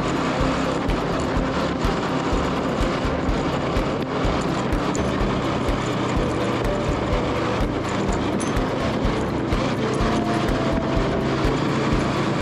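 Tyres rumble and bump over a dirt road.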